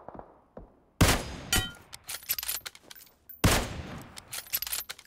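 A rifle fires two loud, sharp shots that echo away.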